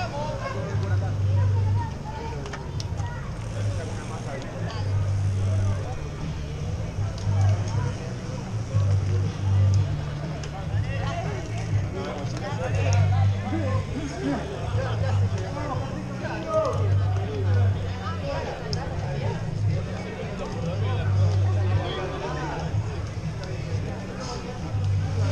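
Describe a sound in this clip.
Bicycles roll past on pavement with clicking gears.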